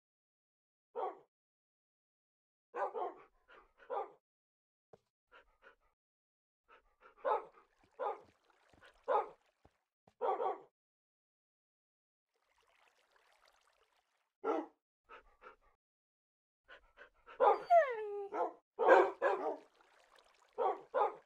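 Dogs bark in short, sharp bursts.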